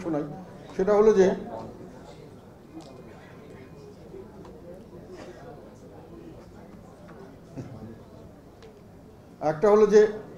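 An elderly man reads out a statement into a microphone, in short loud bursts with pauses.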